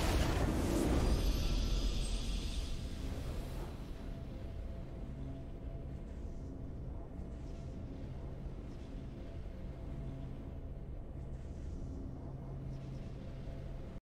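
A game's music swells triumphantly.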